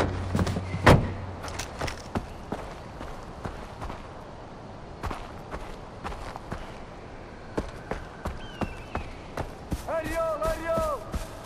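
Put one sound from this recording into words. Footsteps crunch over the ground.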